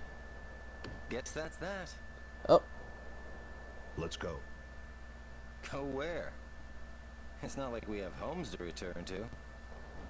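A young man speaks calmly and quietly.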